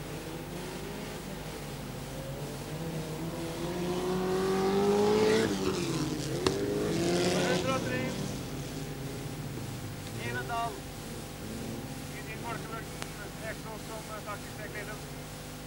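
Race car engines roar and rev as the cars pull away from a start and speed past.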